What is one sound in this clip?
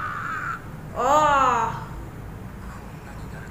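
A young woman exclaims loudly in surprise, close to a microphone.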